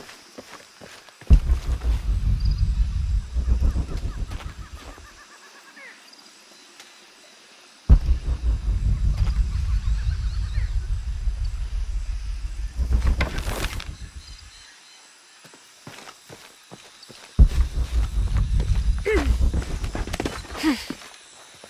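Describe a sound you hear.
Footsteps rustle through dense leafy undergrowth.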